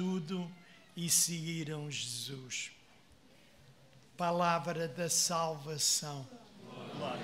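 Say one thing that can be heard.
An elderly man reads out slowly through a microphone in a large echoing hall.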